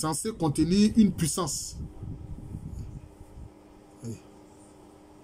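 A middle-aged man speaks calmly and close to a microphone.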